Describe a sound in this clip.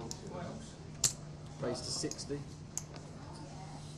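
Poker chips click together in a player's hand.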